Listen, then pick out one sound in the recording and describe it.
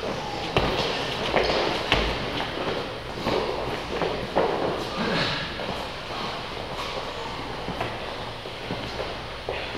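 Heavy balls thud against a wall and floor in an echoing room.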